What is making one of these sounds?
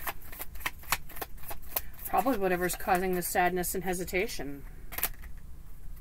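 Cards shuffle and tap together in hands.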